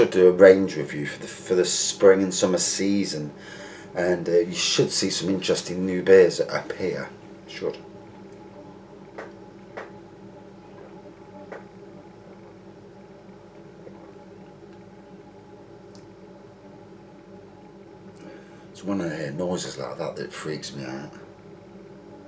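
A middle-aged man talks calmly and close up.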